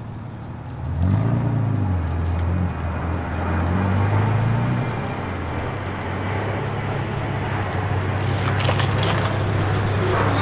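A car engine rumbles as a car drives slowly past on a wet road.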